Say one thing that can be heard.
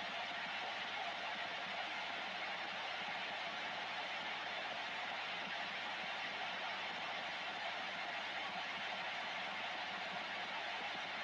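Radio static hisses steadily from a receiver's loudspeaker.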